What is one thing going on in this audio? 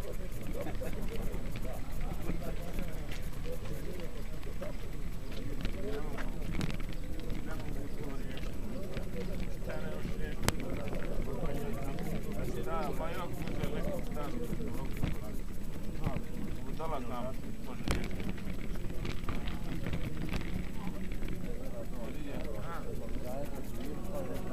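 A group of men walk on asphalt with shuffling footsteps.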